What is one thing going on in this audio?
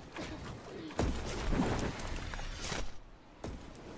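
A launch pad thumps and air whooshes upward.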